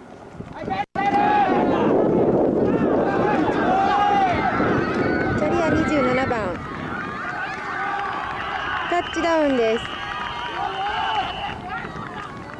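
Spectators cheer and shout loudly outdoors.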